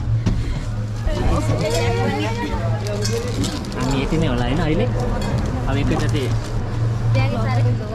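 Women chat nearby in lively voices.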